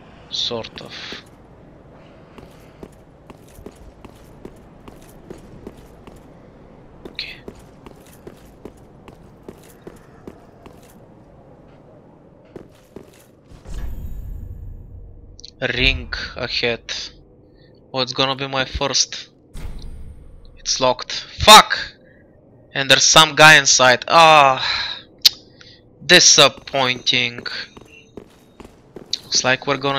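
Footsteps clink and scrape on stone.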